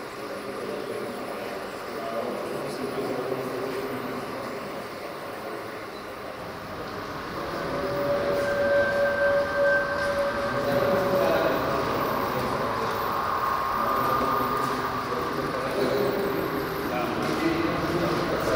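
A model train rumbles and clatters along its track.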